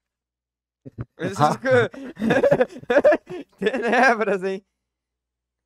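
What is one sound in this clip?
Young men laugh through headset microphones.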